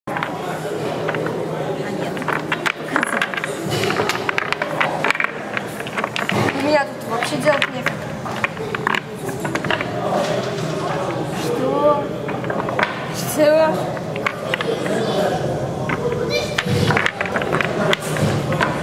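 Wooden blocks clack and knock against each other on a table.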